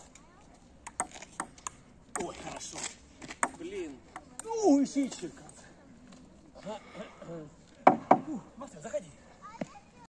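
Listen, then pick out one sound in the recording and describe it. A ping-pong ball clicks sharply against paddles and a table.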